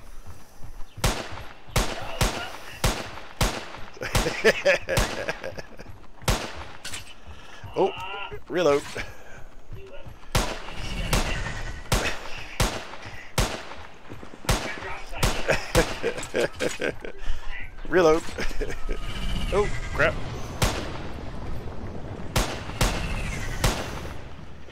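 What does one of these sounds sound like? Rifle shots crack in quick bursts, with echoes.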